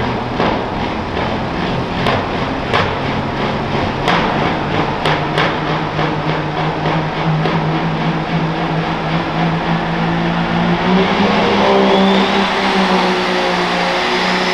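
A turbocharged diesel pro stock pulling tractor roars under load in an echoing arena.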